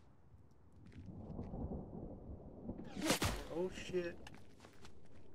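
A man talks casually into a microphone.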